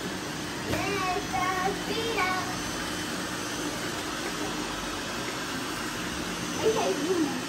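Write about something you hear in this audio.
A young child speaks excitedly nearby.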